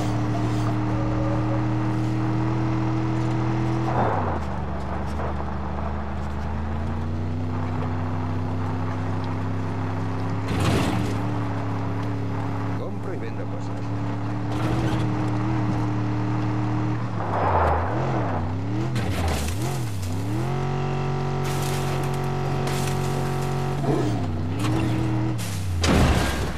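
A vehicle engine hums steadily and rises and falls in pitch as it drives over rough ground.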